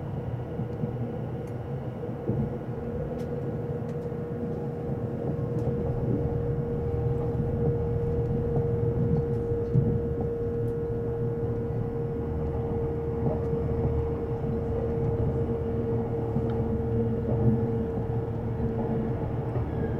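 A train rumbles steadily along the tracks with a low, constant hum.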